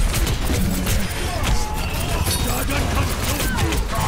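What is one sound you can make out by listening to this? Video game explosions boom and crackle.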